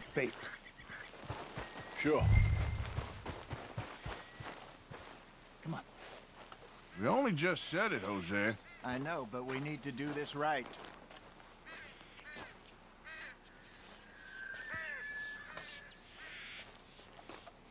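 Footsteps crunch through grass and gravel.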